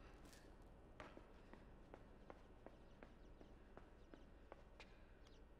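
Light footsteps patter across a hard floor.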